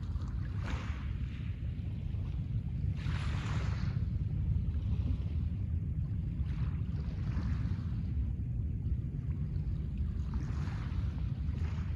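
Small waves wash gently onto a pebble shore.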